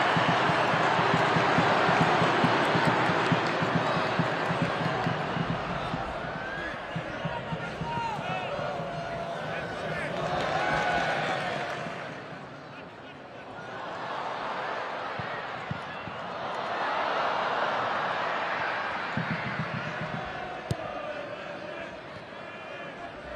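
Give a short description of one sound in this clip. A large stadium crowd roars and cheers, swelling and fading in waves.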